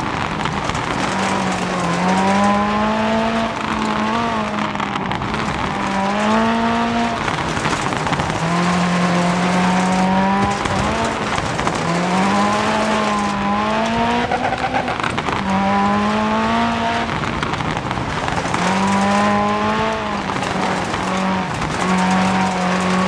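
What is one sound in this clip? Tyres crunch and hiss over loose gravel.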